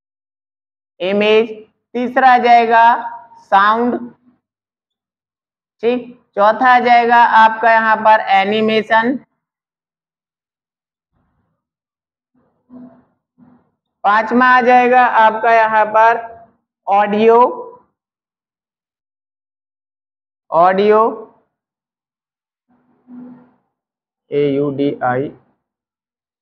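A man speaks calmly and clearly, close to a microphone, in short phrases with pauses.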